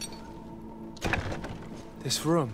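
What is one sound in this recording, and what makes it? A wooden door swings open with a creak.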